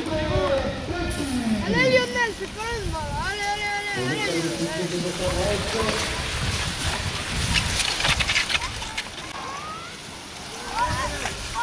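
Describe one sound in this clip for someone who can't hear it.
Bicycle tyres crunch and hiss over loose sand.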